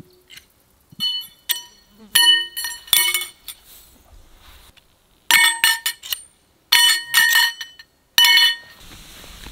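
Metal tent poles clink and ring against each other.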